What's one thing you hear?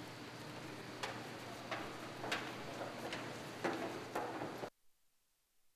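Footsteps shuffle and thump across a wooden stage.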